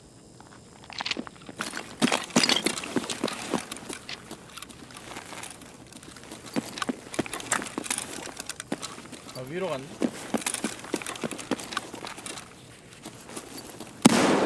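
Footsteps clatter on metal stairs and gritty ground.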